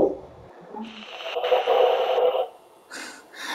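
Harsh static hisses briefly.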